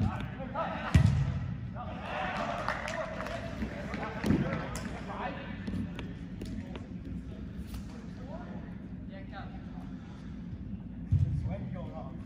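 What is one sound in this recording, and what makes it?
A ball is kicked with dull thumps in a large echoing hall.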